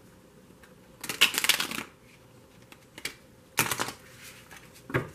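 Cards riffle and flutter as a deck is shuffled by hand.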